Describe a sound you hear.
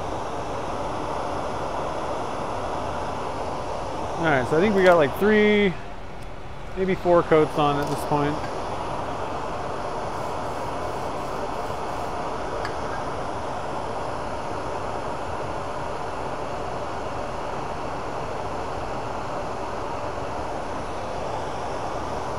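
A lathe motor runs with a steady whirring hum.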